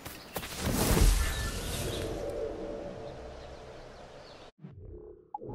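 Leaves rustle as someone pushes into dense bushes.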